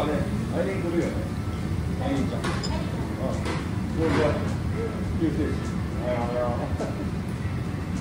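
Chopsticks tap lightly against a ceramic bowl.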